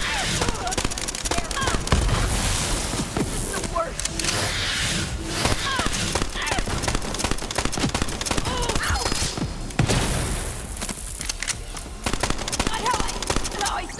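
Bullets explode in sharp crackling blasts.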